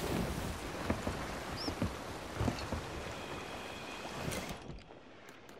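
Sea waves wash steadily around a wooden ship.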